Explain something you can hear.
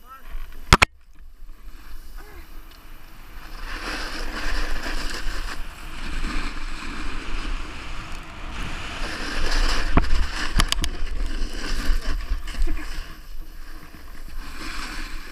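A snowboard carves and scrapes across snow.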